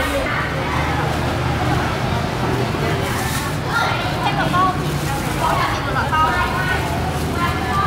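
Two young women talk calmly close by.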